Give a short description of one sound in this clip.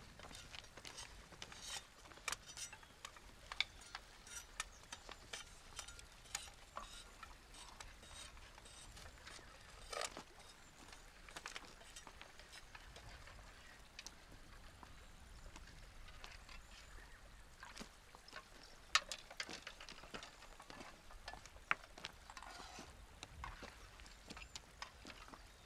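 A river flows and rushes steadily nearby.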